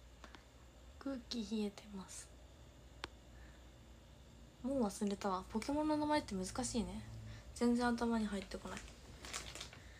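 A young woman speaks softly and casually, close to a microphone.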